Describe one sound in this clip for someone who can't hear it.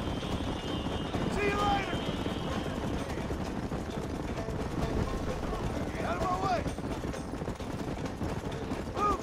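Horses gallop hard, hooves pounding on a dirt track.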